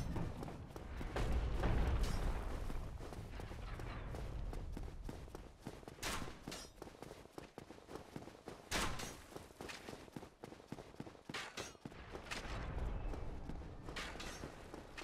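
Armoured footsteps run quickly over stone.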